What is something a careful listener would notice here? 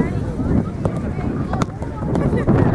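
A ball thumps as a goalkeeper kicks it.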